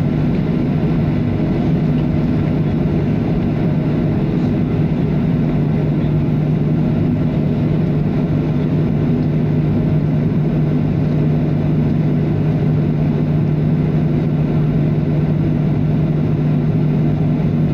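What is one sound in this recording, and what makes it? Jet engines drone steadily with a low hum inside an airliner cabin.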